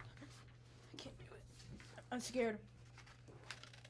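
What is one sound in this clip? Paper rustles as a boy handles a sheet.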